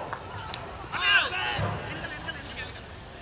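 Young men shout an appeal loudly from across an open field.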